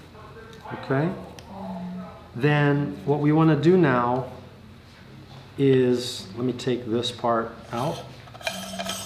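A middle-aged man talks calmly and clearly, close by.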